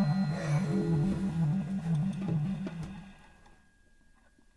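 A banjo strums chords.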